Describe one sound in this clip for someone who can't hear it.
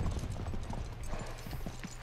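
Horse hooves clop on dry ground.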